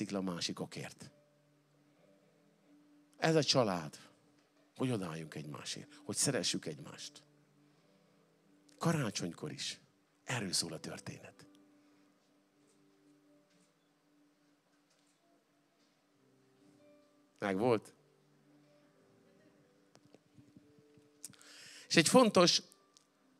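A middle-aged man speaks with animation into a microphone, in bursts with long pauses.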